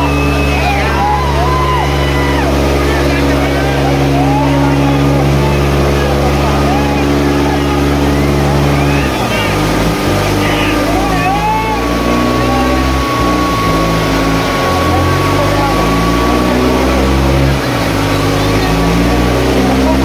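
A tractor engine rumbles loudly as it rolls slowly past.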